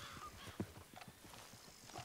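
A horse's hooves thud on a dirt track as it trots past.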